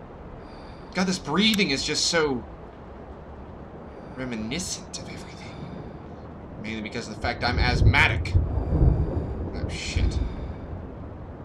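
A man speaks quietly into a close microphone.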